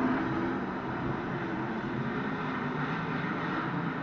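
A loader's engine rumbles nearby.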